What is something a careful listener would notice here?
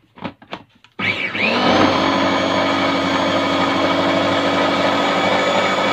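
An electric food chopper whirs loudly and steadily.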